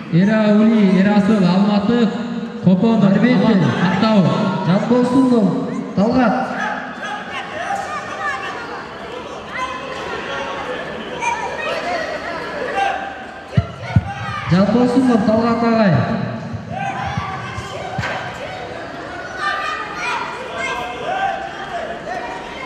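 A man shouts loud instructions nearby in a large echoing hall.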